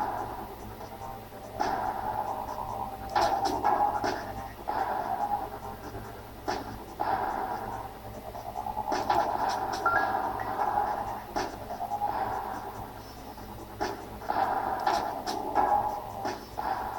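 Electronic game sound effects buzz and chirp through a small speaker.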